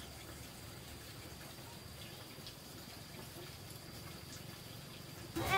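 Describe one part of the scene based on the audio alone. Damp clothes rustle softly.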